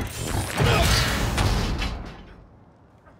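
A loud blast crackles with showering sparks.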